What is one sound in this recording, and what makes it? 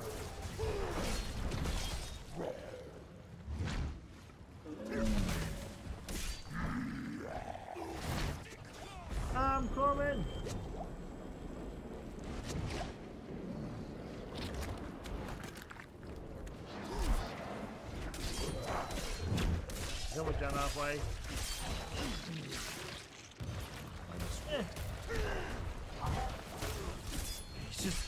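Game combat sounds of blows, spells and impacts clash throughout.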